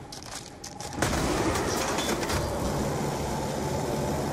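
A weapon fires a loud, rushing icy blast.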